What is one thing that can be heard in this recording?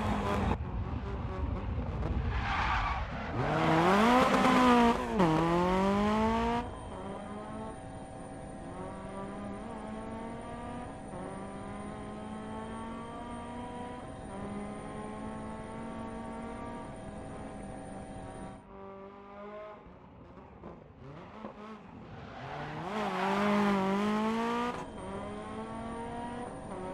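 A rally car engine roars and revs up and down through gear changes.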